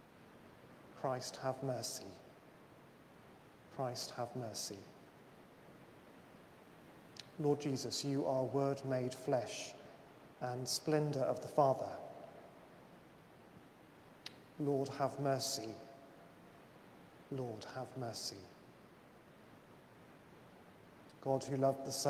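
A man speaks or chants slowly in phrases, his voice echoing in a large reverberant hall.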